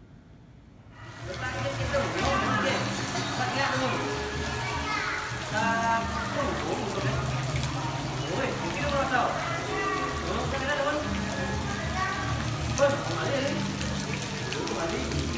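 A crowd of men, women and children chatter nearby, outdoors.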